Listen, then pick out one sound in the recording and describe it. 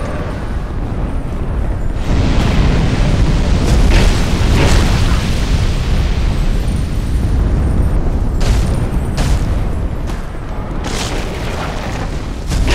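A huge beast's heavy footsteps rumble and thud on the ground.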